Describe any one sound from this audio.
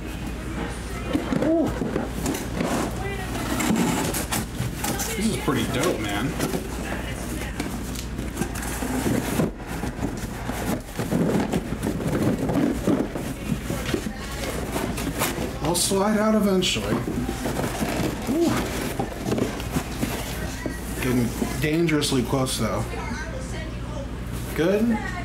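Cardboard boxes scrape and rustle as they are handled.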